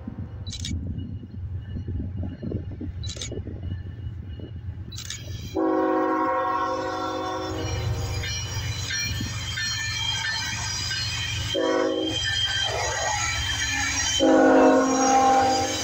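A diesel locomotive rumbles closer and roars past.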